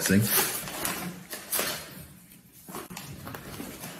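Tape peels away from cardboard with a sticky rasp.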